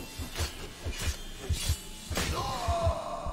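A sword slashes and strikes with heavy thuds.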